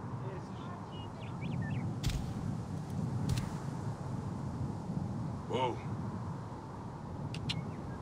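A horse's hooves thud steadily at a gallop on sand.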